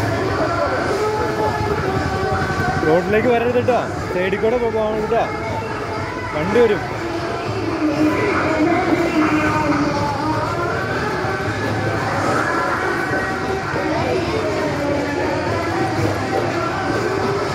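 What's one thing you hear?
Many children chatter and call out nearby, outdoors.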